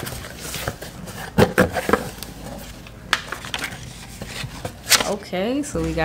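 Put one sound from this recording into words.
Cardboard flaps rustle and thump as a box is opened.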